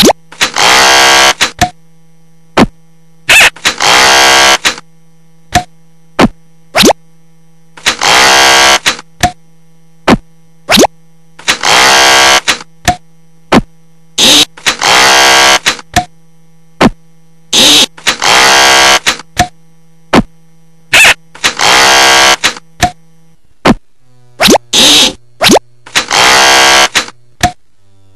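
A buzz saw whirs in short bursts, again and again.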